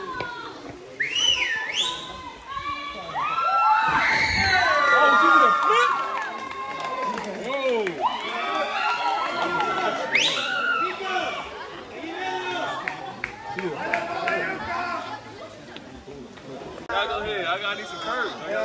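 Young men and women shout and laugh in the distance across open water.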